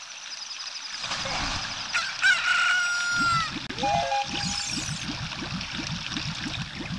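Water splashes as a small figure swims.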